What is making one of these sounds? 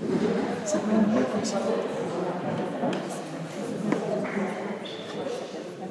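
Men and women chatter nearby in a large echoing hall.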